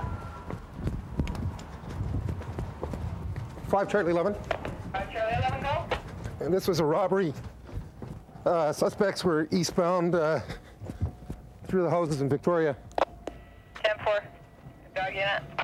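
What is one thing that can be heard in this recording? Footsteps run quickly over pavement and grass.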